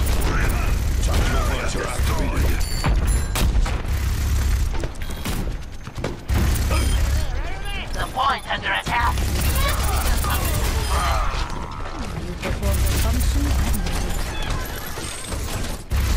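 A heavy gun fires in rapid, booming bursts.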